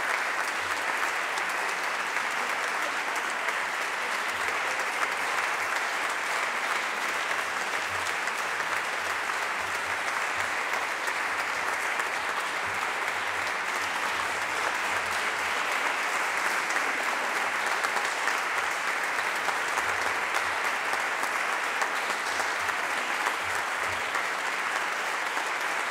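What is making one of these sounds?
A crowd applauds steadily in a large echoing hall.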